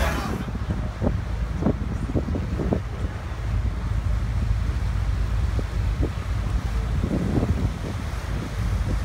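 Seagulls cry over the water.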